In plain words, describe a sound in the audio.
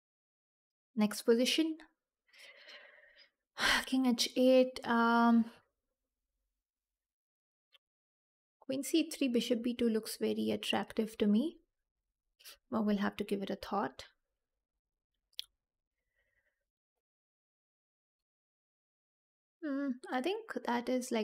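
A young woman speaks with animation into a close microphone, in short bursts with pauses.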